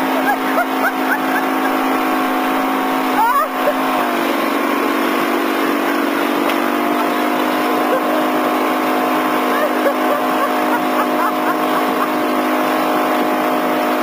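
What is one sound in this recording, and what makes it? A boat engine drones steadily at speed.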